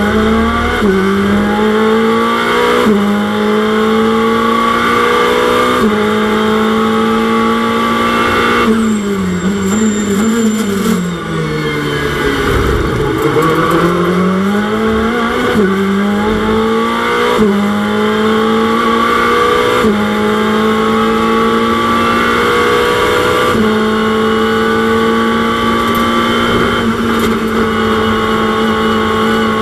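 A race car engine roars loudly, its pitch rising through the gears and dropping as it brakes.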